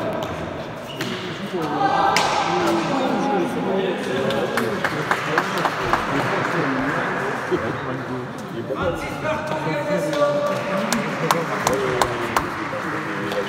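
A ball smacks sharply against walls in a large echoing court.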